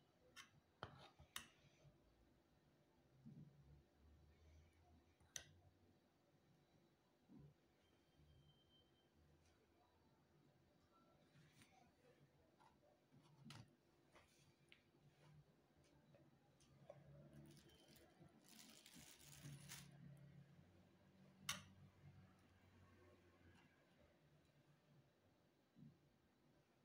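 A metal spoon clinks against a bowl.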